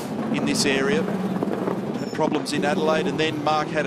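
A race car engine revs and roars as the car pulls away.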